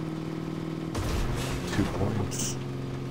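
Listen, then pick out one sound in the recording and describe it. A heavy truck crashes and thuds as it lands.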